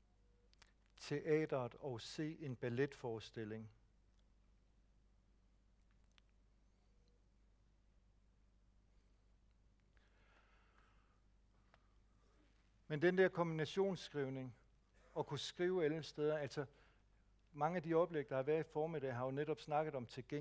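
A man speaks calmly through a microphone, with long pauses between phrases.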